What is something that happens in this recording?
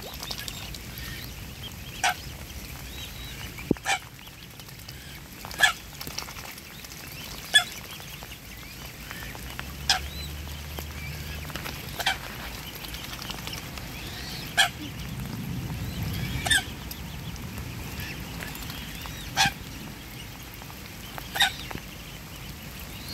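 A swan dabbles its bill in shallow water, splashing softly.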